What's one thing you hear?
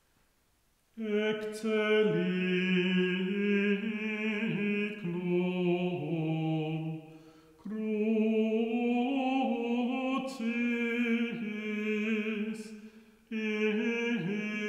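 A man sings a slow chant loudly in an echoing room.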